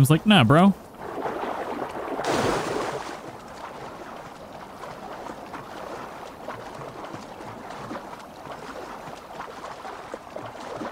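Water splashes as someone swims through a river.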